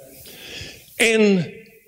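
A man's voice rises loudly into a drawn-out exclamation.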